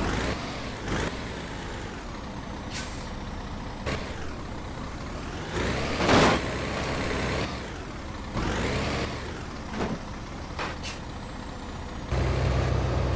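A truck engine hums at idle.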